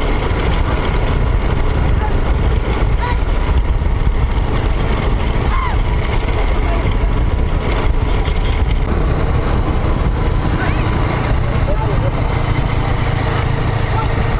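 Bullock cart wheels rumble on an asphalt road.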